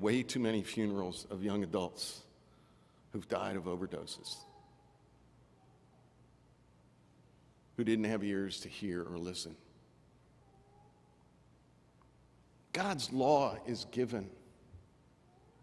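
A middle-aged man preaches slowly through a microphone, with pauses, in a large echoing hall.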